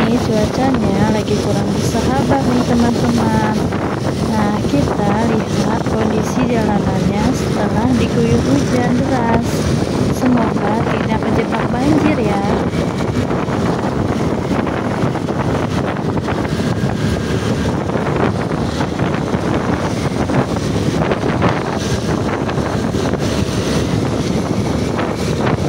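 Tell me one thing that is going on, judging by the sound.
Wind rushes loudly past a moving scooter.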